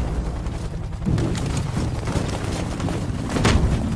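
Heavy boots tramp in step on a hard street.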